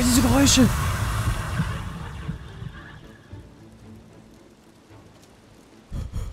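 A magical flame crackles and hums softly.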